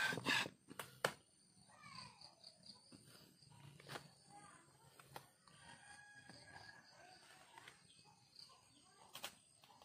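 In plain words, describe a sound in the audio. Wooden sticks knock together now and then.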